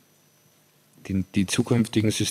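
A second man answers through a microphone.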